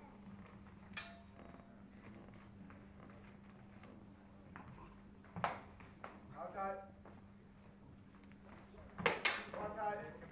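Swords clash with sharp metallic clacks in a large echoing hall.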